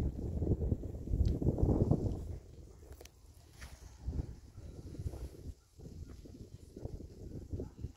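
A small child scrapes stones on the ground.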